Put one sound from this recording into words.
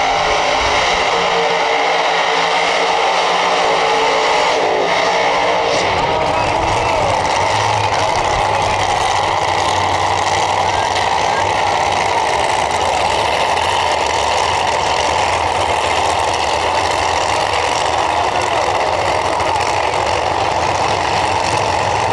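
A drag racing car's engine roars loudly as it speeds past.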